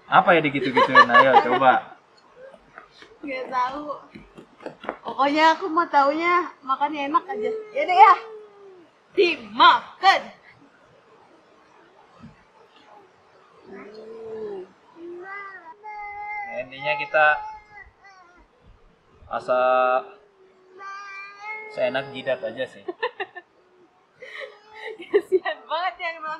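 A small boy talks in a high voice.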